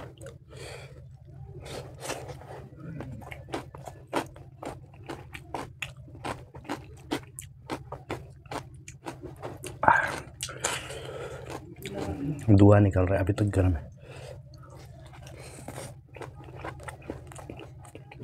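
A man chews food loudly with wet smacking sounds, very close.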